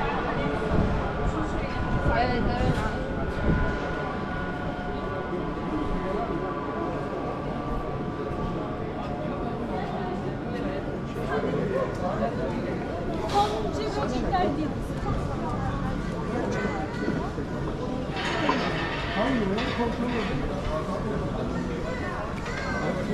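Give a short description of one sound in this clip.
Footsteps walk steadily on cobblestones.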